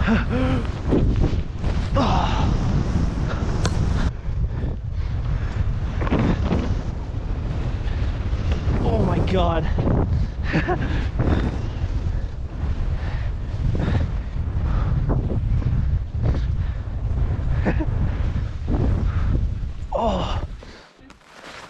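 Wind buffets and rumbles against a fast-moving skier.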